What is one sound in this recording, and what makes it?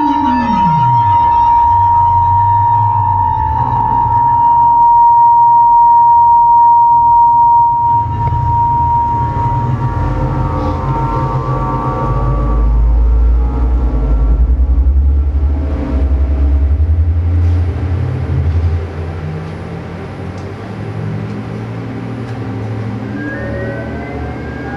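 Electronic tones, drones and hums play loudly through speakers in an echoing room.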